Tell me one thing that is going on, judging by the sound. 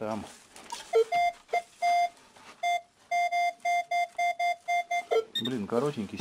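A metal detector beeps in short repeated tones.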